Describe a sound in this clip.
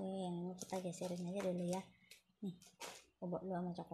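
Plastic flower stems rustle as a hand moves them.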